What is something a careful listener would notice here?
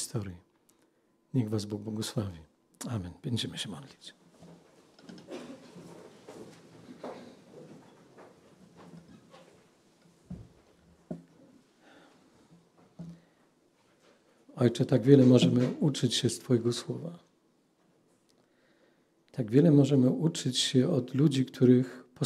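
A middle-aged man speaks calmly into a microphone in a room that echoes.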